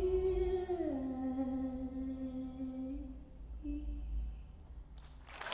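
A woman sings slowly and softly into a microphone.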